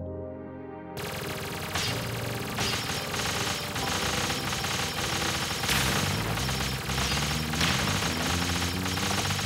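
Rapid electronic blasts and bursts crackle from a video game.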